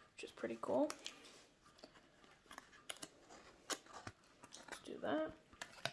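Stiff card rustles and clicks as hands fold it.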